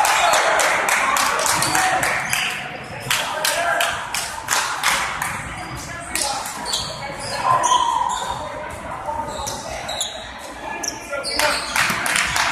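Several young men clap their hands together in quick bursts.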